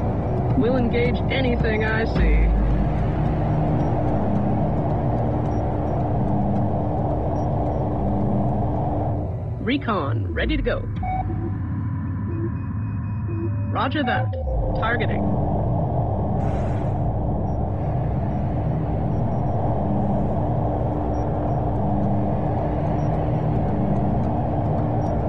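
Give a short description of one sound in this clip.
Spaceship engines hum and roar steadily.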